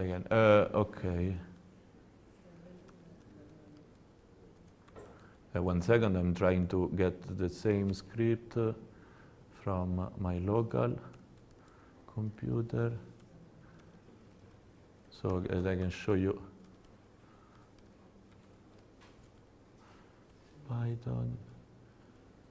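A young man speaks calmly nearby, with pauses.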